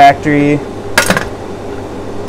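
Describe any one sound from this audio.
A metal pot clanks as it is lifted off a hot plate.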